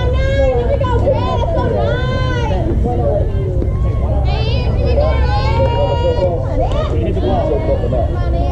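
Young girls shout and chant cheers loudly nearby.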